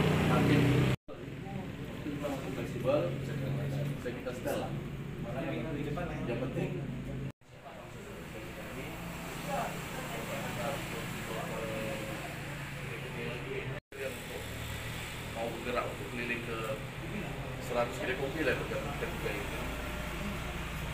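Several men talk and murmur nearby.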